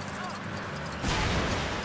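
A car bumps into another car with a loud crash.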